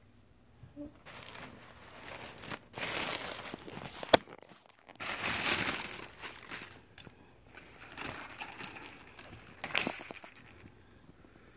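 A paper gift bag rustles and crinkles close by.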